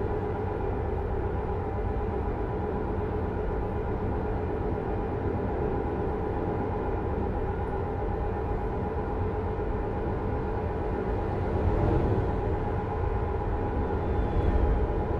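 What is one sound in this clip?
A truck engine drones steadily with a low rumble.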